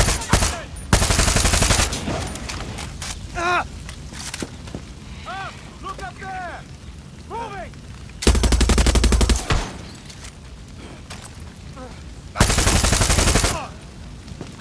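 A machine gun fires long rapid bursts.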